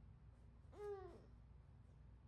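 A baby whines briefly in protest close by.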